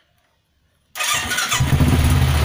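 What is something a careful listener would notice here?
A motorcycle engine starts up and idles with a deep rumble.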